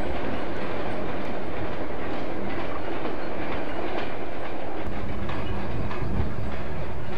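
A train rumbles steadily along the track.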